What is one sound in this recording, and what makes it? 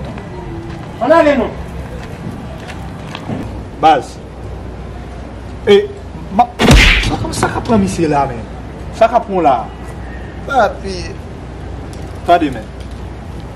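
A young man speaks sharply and accusingly close by.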